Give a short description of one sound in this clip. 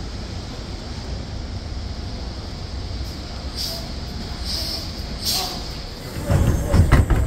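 A city bus pulls in, its engine rumbling as it approaches.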